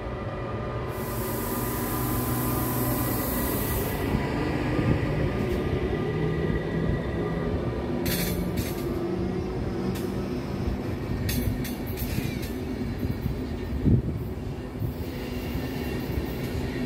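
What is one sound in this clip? Train brakes squeal and hiss as the train slows.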